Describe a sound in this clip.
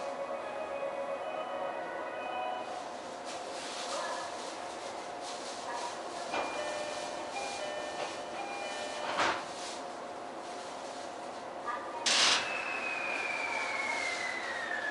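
A train's electric motor whines steadily as the train rolls slowly along the track.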